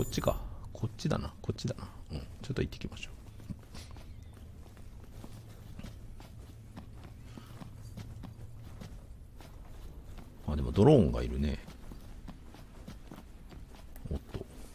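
Footsteps tread softly on hard ground.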